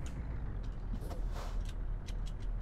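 A windscreen wiper swishes across glass.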